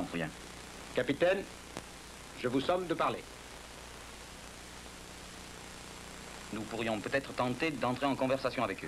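An older man speaks in a low, firm voice.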